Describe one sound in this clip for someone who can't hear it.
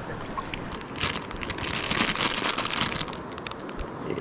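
A plastic snack wrapper crinkles close by.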